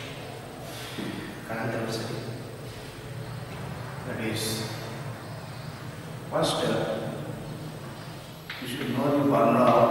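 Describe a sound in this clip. A man speaks in a lecturing tone, close by.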